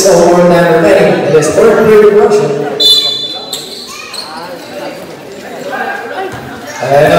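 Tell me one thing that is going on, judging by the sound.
A crowd of spectators cheers and shouts loudly close by.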